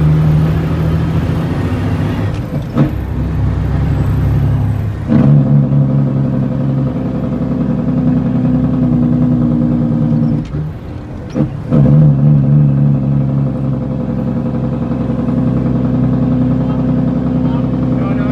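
A bus engine drones and changes pitch as the gears shift.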